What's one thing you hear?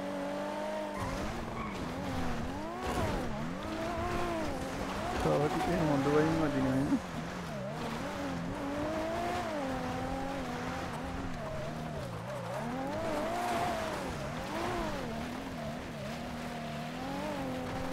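Tyres crunch and skid over loose dirt.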